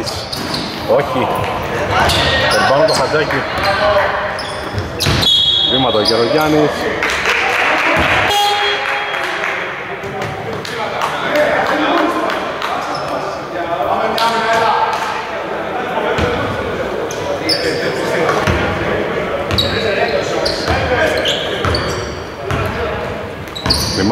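Young men call out to each other, echoing in a large hall.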